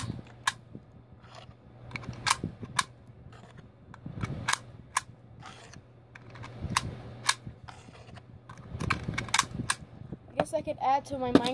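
Plastic toy pieces click and clatter as they are handled.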